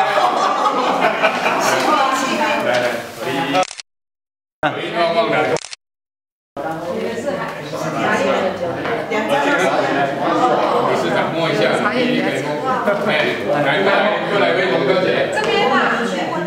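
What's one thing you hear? Several men and women chat at once nearby in a room.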